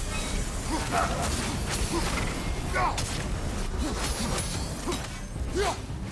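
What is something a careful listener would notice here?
Heavy weapon blows strike and clang in quick succession.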